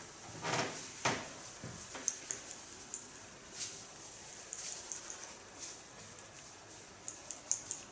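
Hands rustle and scrunch through hair.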